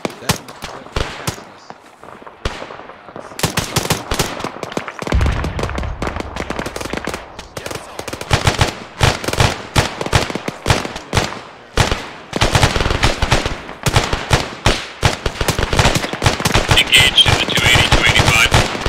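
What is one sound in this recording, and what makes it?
Footsteps crunch on dry dirt and gravel.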